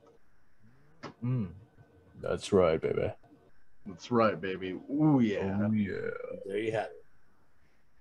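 Young men talk with animation over an online call.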